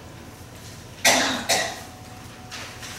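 A woman coughs twice, close by.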